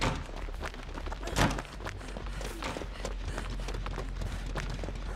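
Footsteps run quickly through rustling grass and over dirt.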